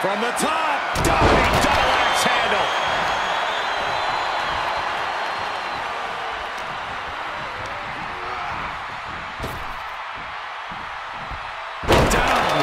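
A heavy body slams onto a wrestling mat with a loud thud.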